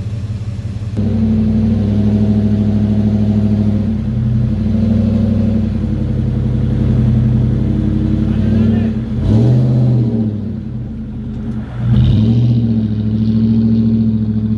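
A car engine revs hard and strains, rising and falling in pitch.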